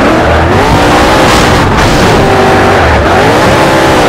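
Tyres screech on asphalt in a hard corner.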